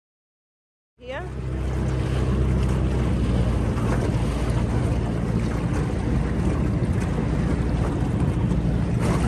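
An outboard motor drones steadily as a boat moves across calm water.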